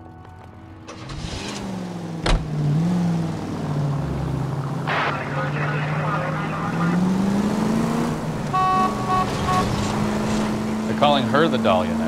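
A car engine starts, idles and revs as the car drives off.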